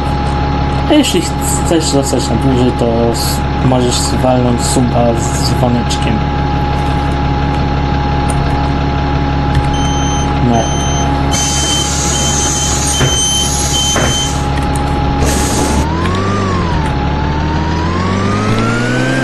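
A bus engine hums steadily and then revs higher as the bus pulls away.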